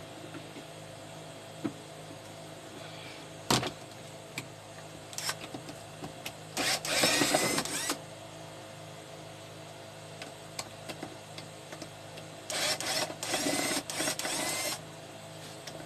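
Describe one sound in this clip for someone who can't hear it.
A screwdriver scrapes and clicks against a metal case.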